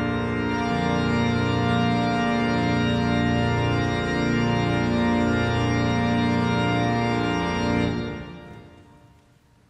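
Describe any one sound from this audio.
A pipe organ plays loud sustained chords that ring out in a large echoing hall.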